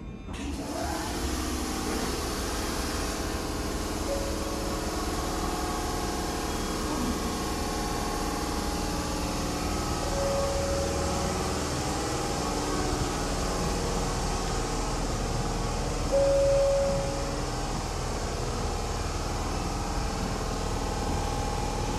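A standing train hums low and steadily in an echoing underground station.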